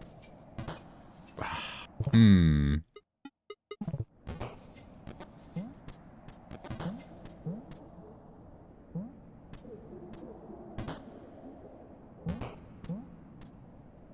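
Short soft game sound effects blip and thump as a small character hops about.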